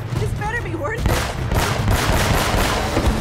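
Pistol shots fire in quick succession.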